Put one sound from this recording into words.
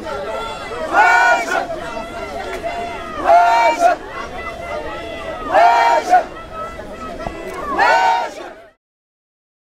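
A large crowd chants loudly in rhythmic bursts outdoors.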